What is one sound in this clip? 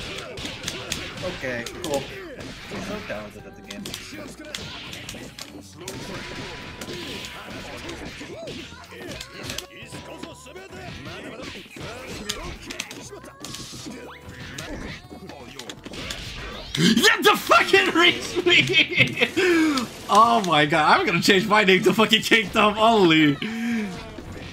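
Fast electronic game music plays.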